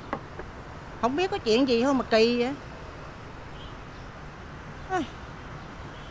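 A middle-aged woman speaks close by, in a sad, emotional voice.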